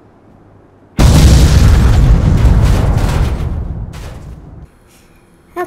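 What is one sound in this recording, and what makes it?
A huge explosion booms and rumbles away slowly.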